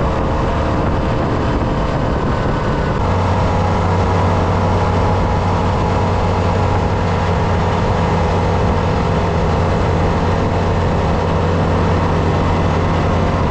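Tyres hiss over a slushy, snowy road.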